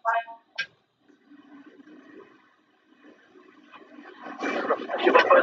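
A middle-aged woman speaks over an online call.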